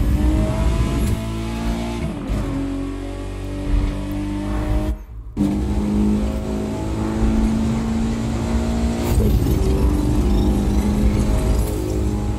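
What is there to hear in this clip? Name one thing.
A car engine roars at high speed, its pitch climbing and dropping with gear changes.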